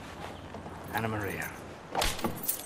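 A woman calls out a name.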